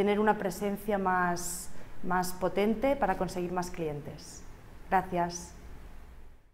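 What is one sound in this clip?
A young woman speaks calmly and brightly, close by.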